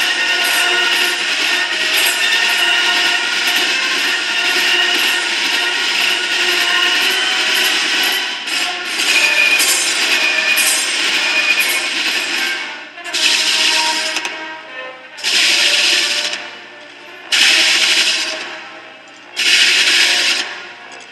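A marching band plays brass and woodwind music in a large echoing hall.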